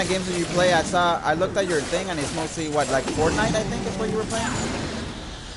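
A large creature growls and roars in a fight.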